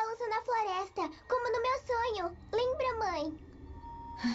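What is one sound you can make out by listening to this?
A young girl speaks earnestly up close.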